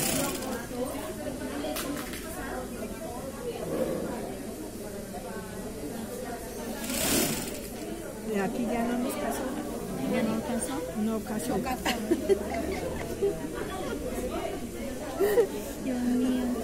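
Several women talk nearby in low, conversational voices.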